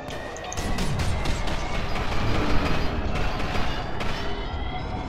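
A gun fires rapid bursts of loud shots.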